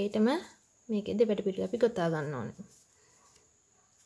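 Yarn rustles softly as a crochet hook pulls it through stitches.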